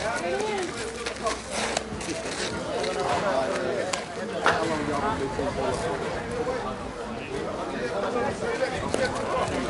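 Several men and women chatter and call out nearby, outdoors.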